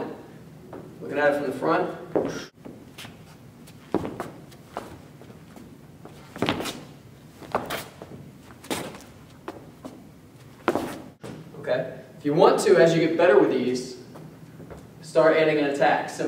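A man talks calmly and clearly close to the microphone.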